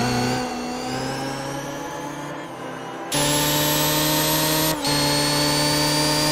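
An electric race car speeds past with a high, steady whine.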